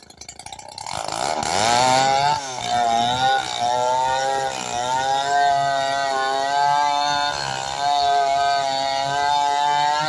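A chainsaw cuts steadily through a log.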